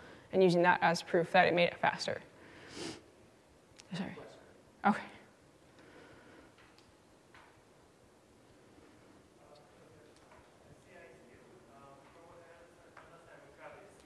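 A woman speaks into a microphone, heard through loudspeakers in a large hall.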